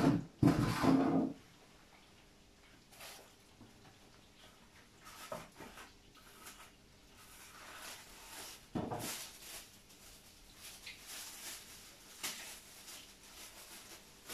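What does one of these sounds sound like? A wooden spreader scrapes across batter on an electric crêpe griddle.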